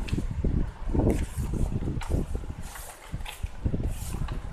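Book pages rustle and flutter as they are turned quickly.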